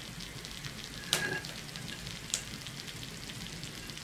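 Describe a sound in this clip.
A metal spatula clinks against a pie dish.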